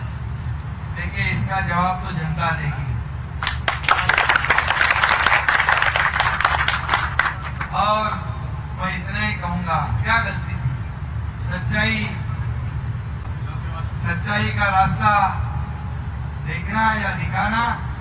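A man speaks loudly and with animation into a microphone over a loudspeaker.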